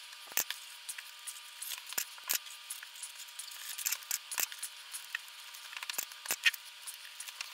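Plastic wire connectors click and rustle as they are pressed together by hand.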